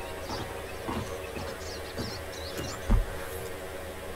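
Boots thud on wooden boards.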